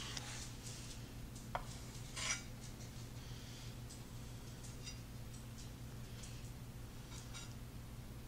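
Brownie pieces tap down on a wooden board.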